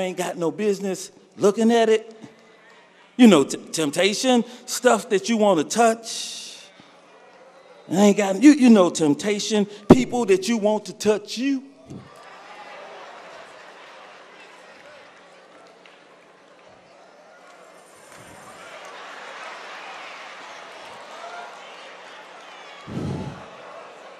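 A man speaks forcefully into a microphone, his voice carried through loudspeakers.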